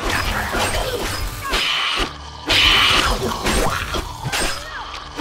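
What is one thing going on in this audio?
Sharp blows strike an enemy.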